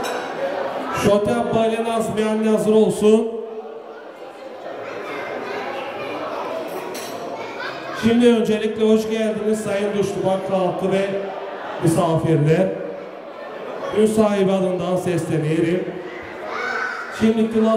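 A man sings loudly into a microphone through loudspeakers in a large echoing room.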